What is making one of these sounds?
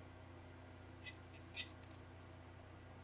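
Plastic model kit parts click and rattle on a desk.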